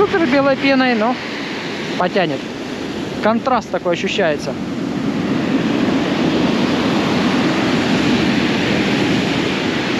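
Waves break and wash over pebbles on the shore.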